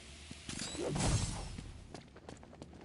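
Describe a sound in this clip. An electric device crackles and whooshes.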